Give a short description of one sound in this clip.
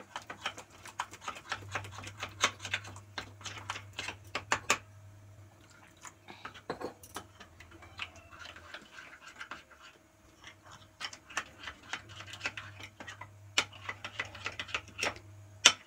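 A spoon scrapes and clinks against a glass bowl.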